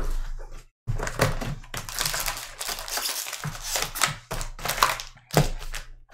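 Plastic card wrappers crinkle and rustle.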